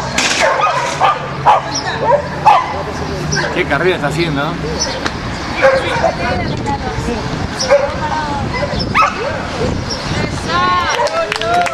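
A man calls out commands to a dog outdoors.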